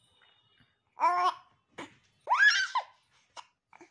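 A baby coos and squeals happily close by.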